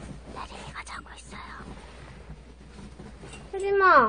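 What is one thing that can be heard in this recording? A young woman whispers close by.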